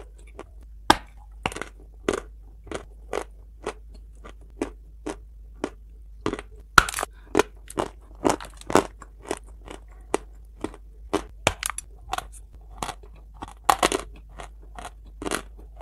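Foil crinkles and rustles close up.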